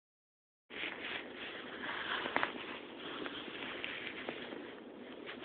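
Small animals' claws scratch and rustle softly on fabric, close by.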